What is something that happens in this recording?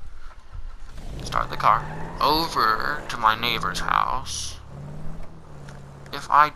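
A car engine revs and hums as the car drives off.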